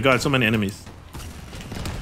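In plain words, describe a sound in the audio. Heavy guns fire in bursts.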